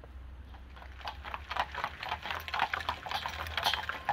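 Horse hooves clop on a road.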